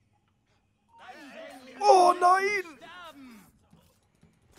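A man cries out in pain during a struggle.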